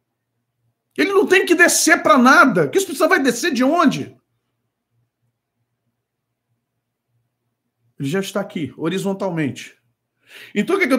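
A man speaks with animation into a close microphone, pausing between phrases.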